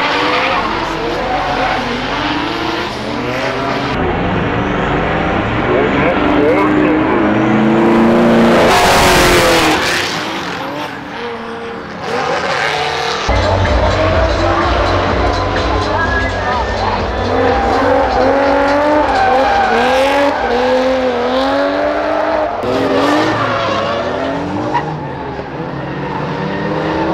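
Car engines rev hard and roar, rising and falling in pitch.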